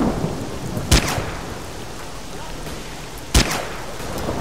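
A rifle fires two sharp shots.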